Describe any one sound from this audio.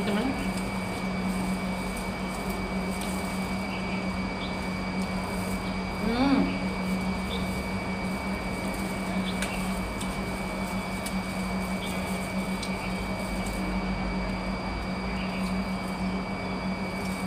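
Paper and leaves rustle as food is unwrapped and handled.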